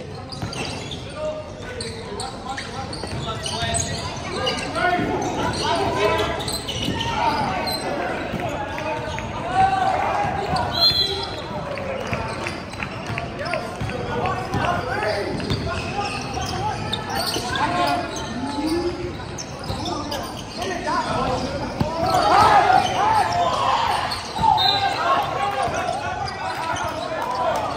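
Young men shout and call out across a large echoing gym.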